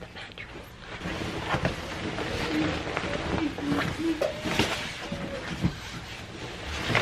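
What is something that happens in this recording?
A mattress in plastic wrapping rustles and scrapes as it is shifted.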